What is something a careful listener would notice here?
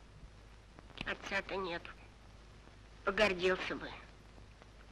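An elderly woman speaks pleadingly up close, in short bursts.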